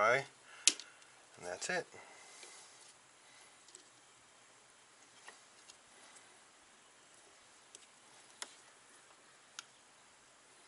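Metal tools click and clink against an engine.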